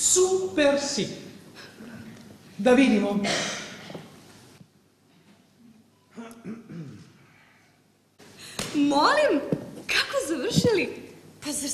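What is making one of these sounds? A young woman sings loudly into a microphone in a large hall.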